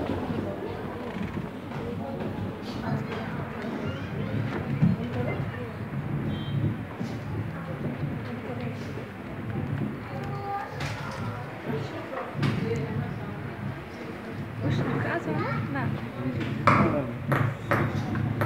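A crowd of children and adults chatters in a large echoing hall.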